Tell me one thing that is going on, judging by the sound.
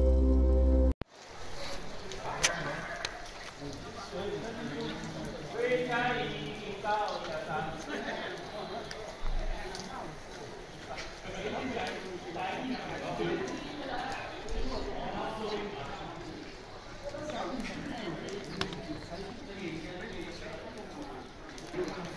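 Men and women chat in a busy street nearby, outdoors.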